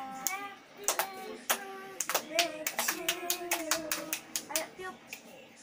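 A woman claps her hands in time.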